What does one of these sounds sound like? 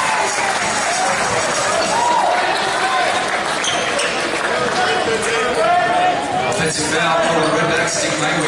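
A crowd of people talk and call out in a large echoing hall.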